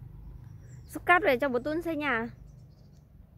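A young child calls out close by in a high, sing-song voice.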